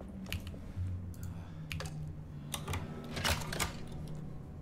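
A key clicks and turns in a door lock.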